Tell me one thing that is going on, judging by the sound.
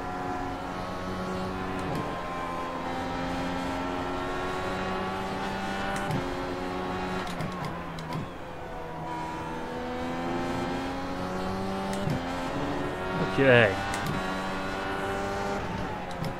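A racing car engine roars steadily, its pitch rising through the gears and dropping when braking.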